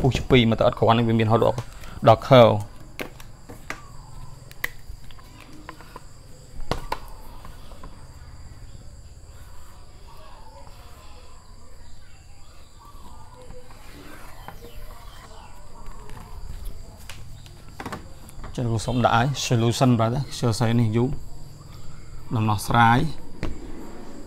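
A young man speaks calmly nearby, pausing at length.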